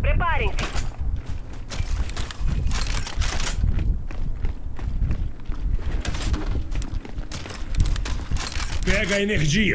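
Heavy armoured footsteps crunch on gravel.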